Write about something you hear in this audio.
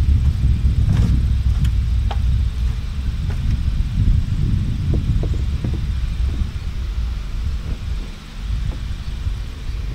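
A wooden board knocks against a wooden wall.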